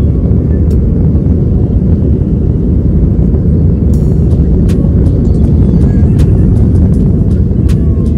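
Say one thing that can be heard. A jet airliner's engines roar loudly and steadily from inside the cabin.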